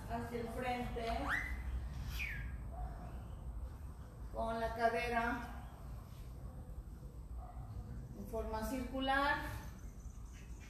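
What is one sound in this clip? A woman speaks in short bursts nearby.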